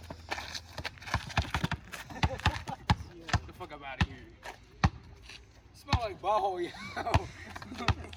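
A basketball bounces repeatedly on pavement outdoors.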